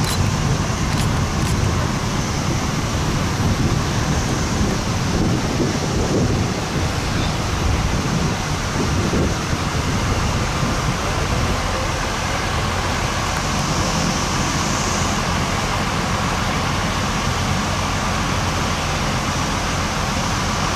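Fire engines idle nearby with a steady low rumble.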